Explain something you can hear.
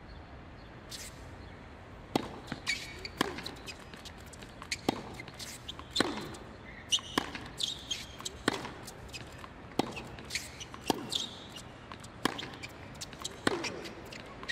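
A tennis ball is struck back and forth with sharp racket hits.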